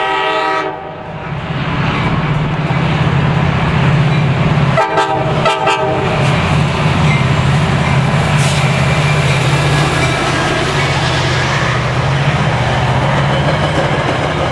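A diesel locomotive engine rumbles loudly as it passes close by.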